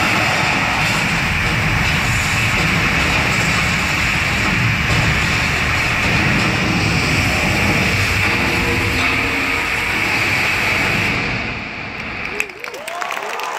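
A live band plays loudly in a large echoing arena.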